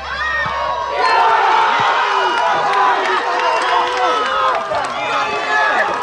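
Young men cheer and shout in celebration.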